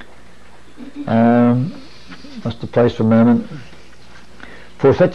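A man speaks slowly and deliberately, as if lecturing.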